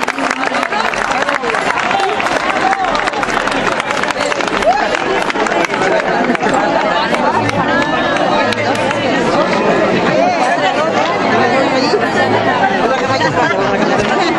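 A crowd chatters and laughs loudly outdoors.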